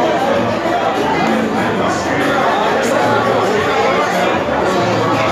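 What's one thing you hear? A crowd of men talks and shouts excitedly close by.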